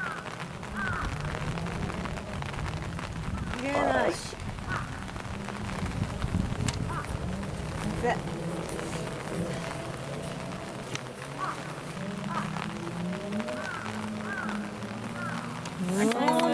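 Young women talk and laugh nearby, outdoors.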